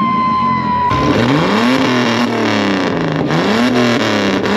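A car engine revs loudly, rising and falling.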